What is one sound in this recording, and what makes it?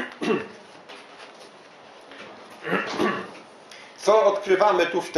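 An older man speaks calmly in bursts, with pauses.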